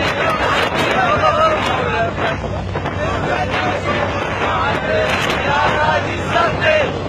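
A crowd of young men shouts and chants loudly close by.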